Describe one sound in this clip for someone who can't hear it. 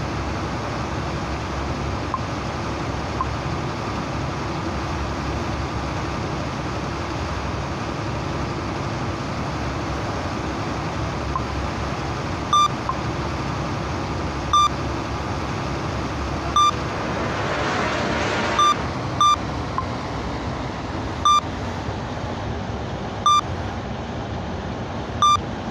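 A large ship's engine rumbles low and steady.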